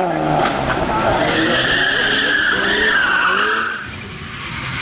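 A rally car engine roars and fades as the car speeds away.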